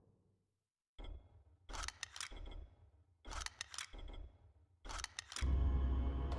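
Short sharp menu clicks tick several times.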